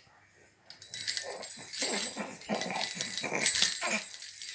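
A baby babbles softly.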